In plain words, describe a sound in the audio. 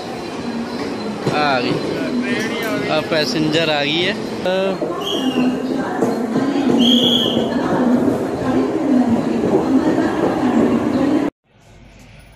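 A large crowd of men and women chatters and shouts loudly nearby.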